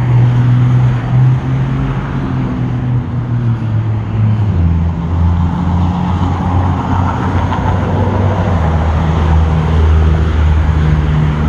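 Traffic hums steadily along a nearby road outdoors.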